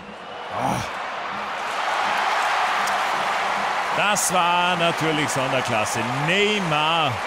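A large crowd cheers and roars loudly in a stadium.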